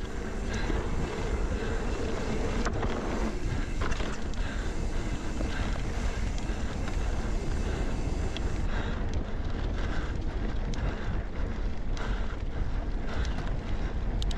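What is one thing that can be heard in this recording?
Bicycle tyres rumble over a dirt trail.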